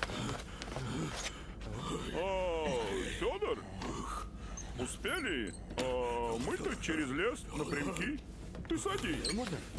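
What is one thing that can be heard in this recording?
A bearded man speaks with animation, close by.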